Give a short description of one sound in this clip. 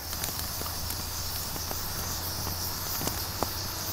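Oil glugs as it pours from a plastic bottle.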